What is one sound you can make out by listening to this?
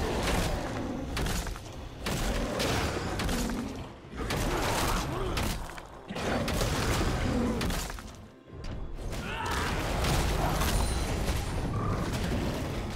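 Video game spell effects crackle and clash during a fight.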